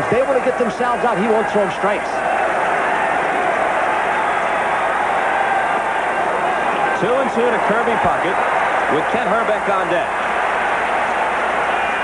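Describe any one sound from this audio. A large crowd murmurs steadily in a big stadium.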